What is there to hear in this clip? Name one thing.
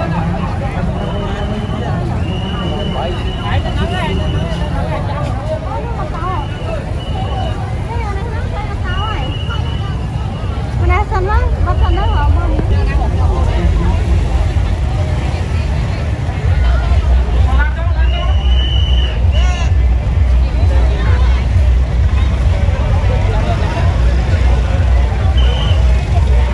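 A police whistle blows in short sharp blasts.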